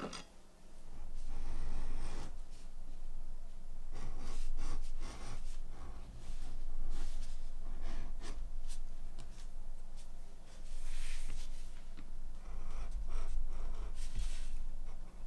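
A knife scrapes and cuts through leather.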